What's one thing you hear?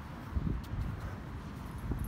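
Dogs scuffle and play on grass.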